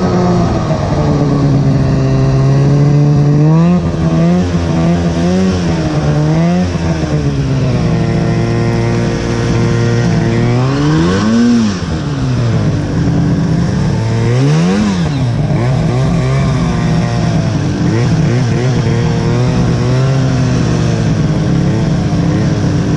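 Snow hisses and sprays against the snowmobile.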